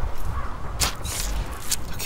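Cloth rustles as a bandage is wrapped around an arm.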